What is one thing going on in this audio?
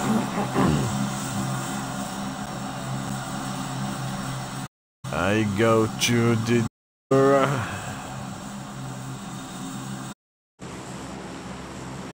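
A four-engine turboprop plane drones in flight.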